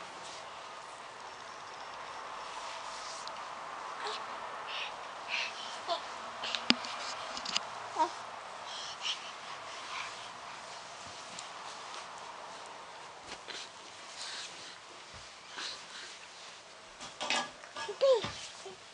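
Hands rub a bare leg and rustle soft bedding.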